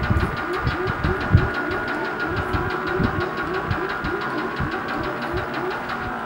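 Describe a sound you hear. Chiptune game music plays with a thumping beat.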